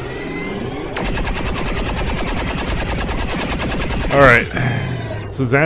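An energy weapon fires a rapid, buzzing stream of shots.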